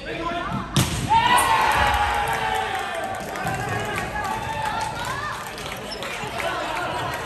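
Young players shout and cheer loudly in an echoing gym.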